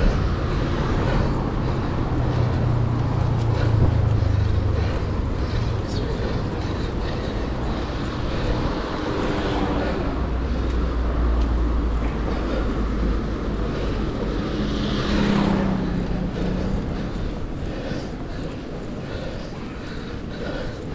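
Wind rumbles and buffets past a moving bicycle outdoors.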